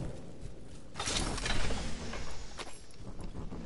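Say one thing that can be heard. A metal crate slides open with a loud clank.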